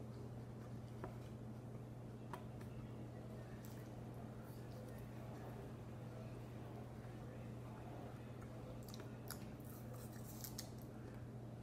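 A boy bites and chews crisp apple with a wet crunch.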